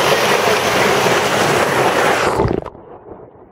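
A stream rushes loudly over rocks.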